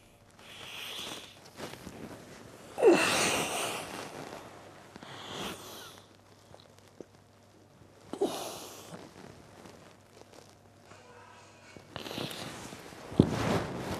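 A man sobs and wails loudly close by.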